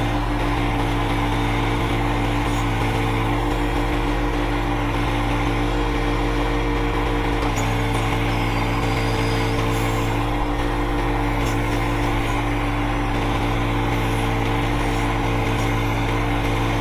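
A hydraulic backhoe whines as it digs.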